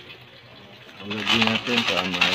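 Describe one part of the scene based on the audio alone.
Small pebbles rattle in a plastic container.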